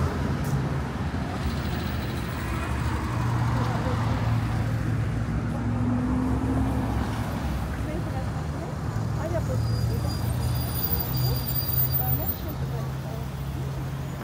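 Car engines hum and tyres roll by on a busy street outdoors.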